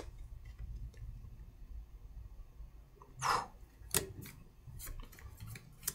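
Game cards are shuffled and tapped on a table.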